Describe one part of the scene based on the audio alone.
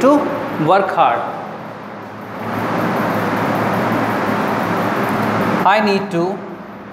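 A young man explains calmly, close by.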